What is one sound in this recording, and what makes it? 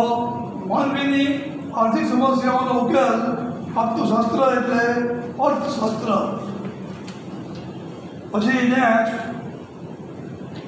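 A middle-aged man reads aloud clearly and calmly from close by.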